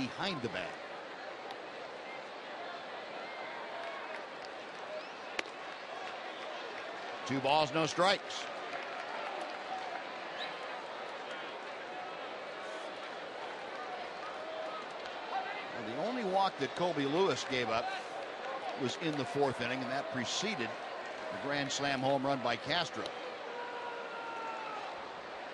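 A crowd murmurs in a large outdoor stadium.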